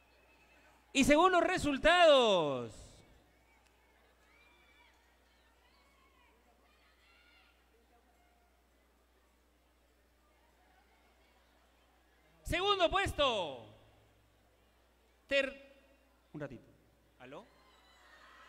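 A crowd cheers and shouts loudly in short bursts.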